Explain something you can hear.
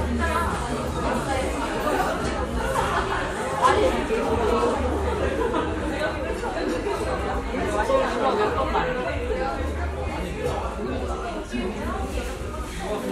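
Young men sing into microphones, heard through loudspeakers.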